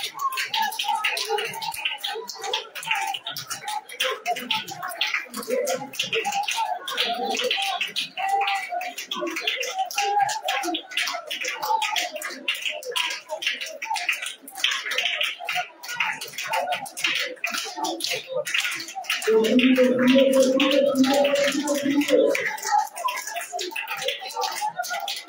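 A group of women pray aloud together, many voices overlapping with fervour.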